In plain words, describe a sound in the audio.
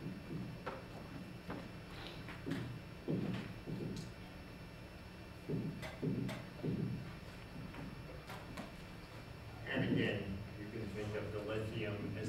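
A man lectures calmly, heard through a microphone.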